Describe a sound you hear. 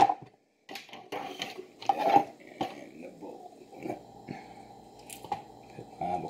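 A spoon scrapes food into a metal bowl.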